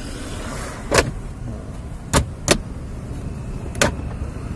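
Plastic trim clicks and snaps as it is pried loose.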